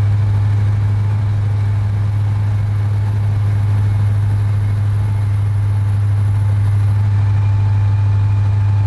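A truck engine hums steadily at cruising speed.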